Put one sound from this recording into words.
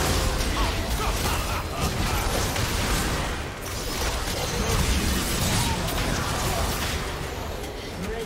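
Magic blasts and weapon strikes clash rapidly in a fight.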